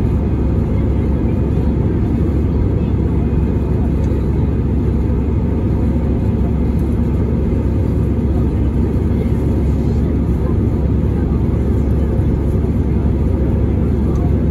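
Jet engines roar steadily, heard from inside an aircraft cabin.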